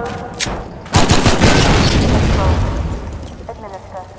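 A barrel explodes with a loud boom.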